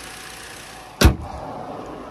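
A car bonnet slams shut with a loud bang.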